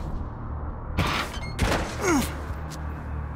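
A heavy blow lands with a thud.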